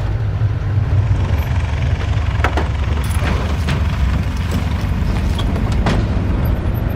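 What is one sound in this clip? A heavy truck engine idles with a low, steady rumble.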